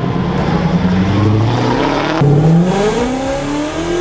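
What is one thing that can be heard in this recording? A car engine revs hard, rising in pitch.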